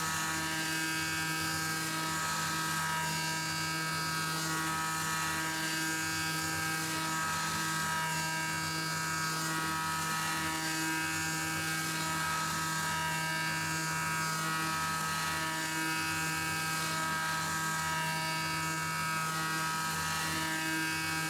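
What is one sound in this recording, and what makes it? A milling machine spindle whines steadily at high speed.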